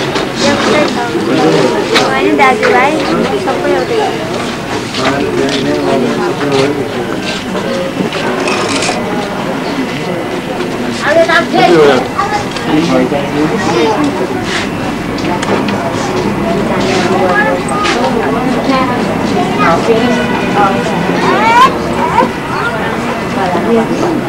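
Several men and women talk at once nearby in a lively crowd.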